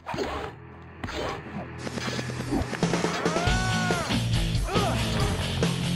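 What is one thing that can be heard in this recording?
Blades clash and strike in a fast sword fight.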